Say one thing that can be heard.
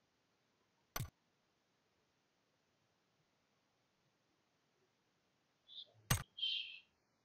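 A short click sounds as a menu item is selected.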